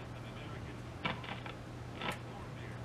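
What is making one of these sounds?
A knob clicks as it is turned.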